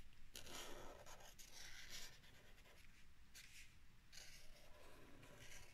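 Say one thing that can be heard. A marker tip squeaks and scratches across paper in short strokes.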